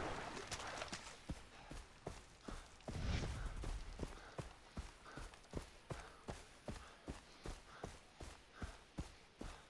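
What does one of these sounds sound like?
Footsteps thud and rustle through grass at a steady pace.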